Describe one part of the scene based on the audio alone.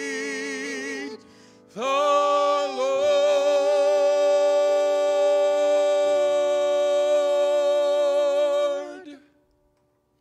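A middle-aged man sings loudly through a microphone, holding long notes.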